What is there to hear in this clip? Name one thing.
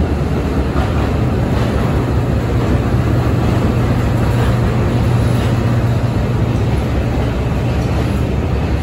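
A train rumbles slowly past close by with a deep, steady engine drone.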